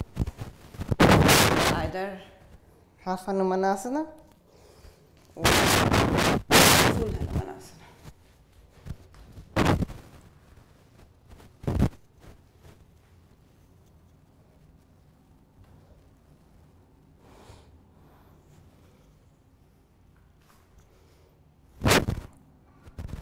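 A young woman breathes out heavily, close by.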